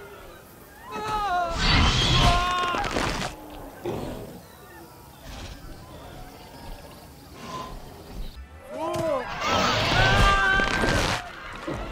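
A dinosaur lets out loud, shrill shrieks.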